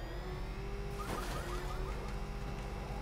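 A crash of metal and debris rings out briefly.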